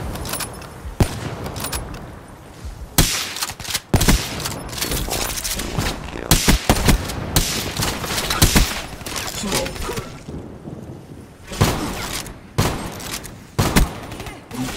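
Guns fire in sharp, sudden shots and short bursts.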